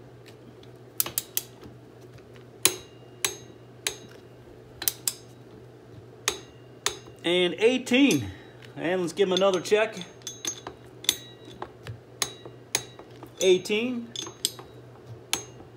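Metal tools clink sharply against an axle.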